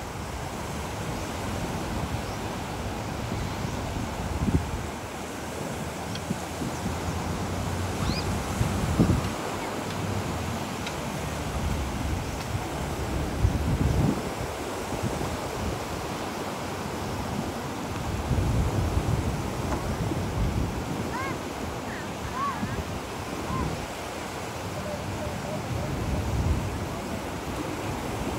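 Wind blows and rumbles across the beach outdoors.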